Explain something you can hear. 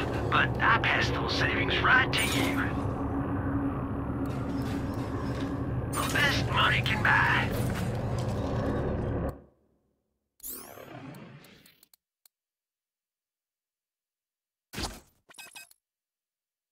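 Electronic menu sounds click and chime.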